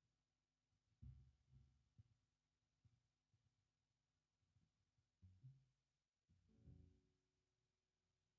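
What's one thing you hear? An unplugged electric guitar plays a few soft, muted notes.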